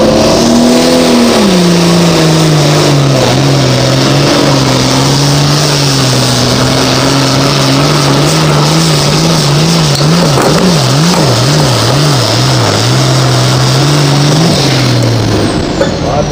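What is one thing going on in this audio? A tractor's engine roars loudly up close, surging and wavering as it pulls.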